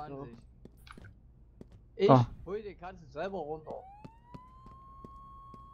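Boots step on pavement.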